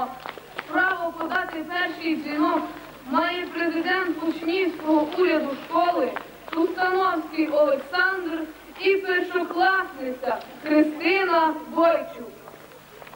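A teenage boy recites into a microphone outdoors.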